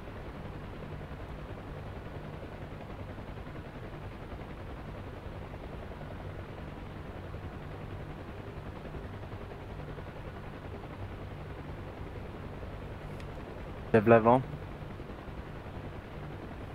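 A helicopter engine and rotor drone steadily from inside the cabin.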